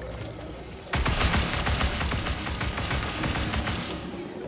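Fiery blasts roar and crackle.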